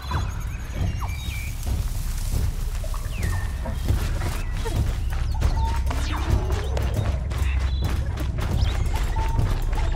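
Footsteps rustle through tall grass and undergrowth.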